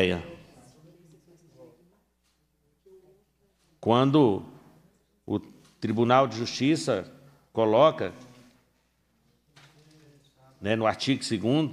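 A middle-aged man speaks calmly into a microphone in short bursts with pauses.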